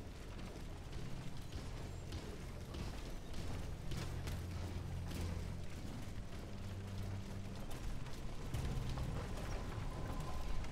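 Footsteps run quickly over wooden planks.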